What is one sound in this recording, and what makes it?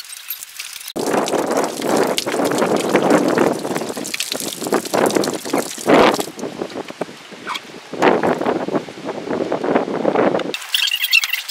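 Gas and spray rush loudly out of an opening in a metal tank.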